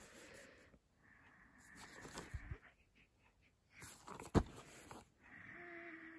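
Plastic wrap crinkles as hands handle a disc case.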